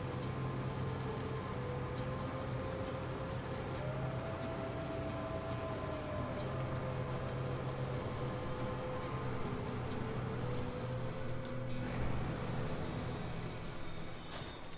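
A heavy truck engine rumbles and strains at low speed.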